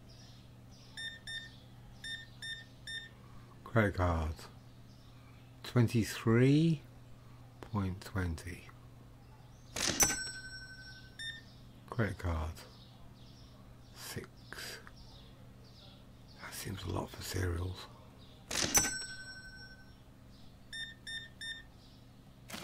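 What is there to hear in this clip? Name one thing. Short electronic beeps sound as items are scanned at a register.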